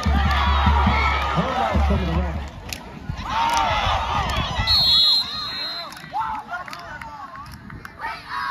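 A crowd in the stands cheers and shouts loudly outdoors.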